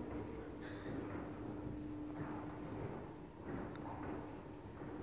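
An elevator hums steadily as it rises.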